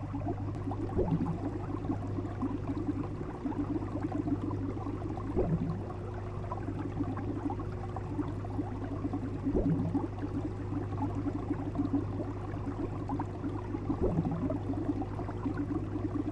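Water gurgles and bubbles steadily.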